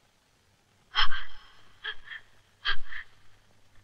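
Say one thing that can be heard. A woman gasps and groans in pain close by.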